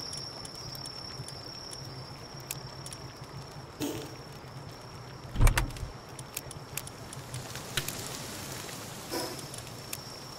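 Soft game menu clicks sound as menus open and close.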